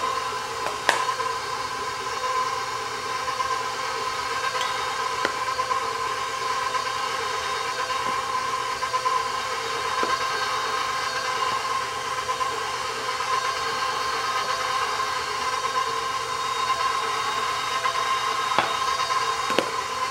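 A stand mixer whirs steadily as its beater turns in a metal bowl.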